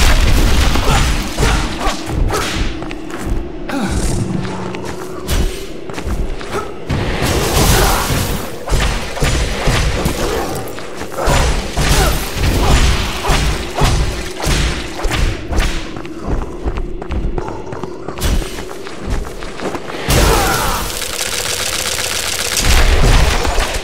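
Sword slashes and hits thud repeatedly in a fight.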